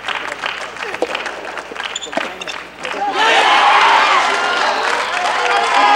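A tennis ball is struck by rackets in a short rally.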